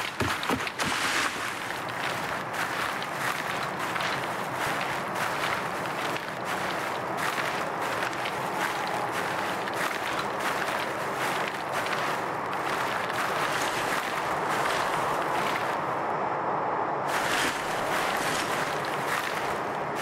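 Tall grass rustles and swishes against a moving body.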